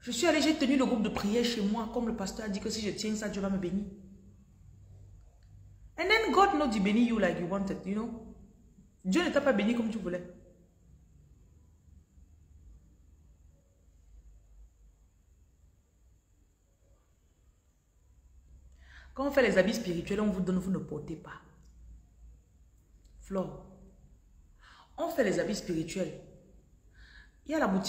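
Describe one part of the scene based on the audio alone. A woman speaks with animation, close by, pausing between phrases.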